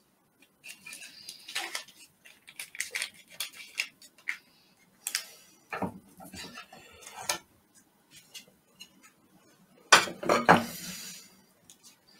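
A knife scrapes and clinks against a metal tray.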